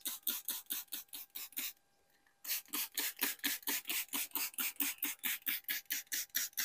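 A spray bottle hisses in quick, rapid bursts.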